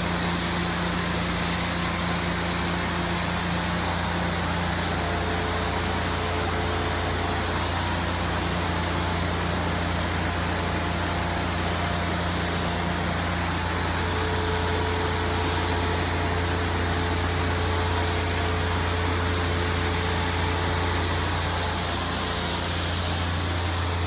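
A spray gun hisses steadily as it sprays.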